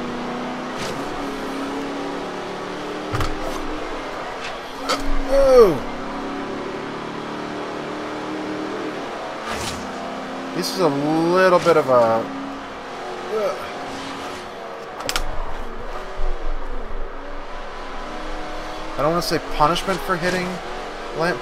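A racing car engine roars steadily, rising and falling as it shifts gears.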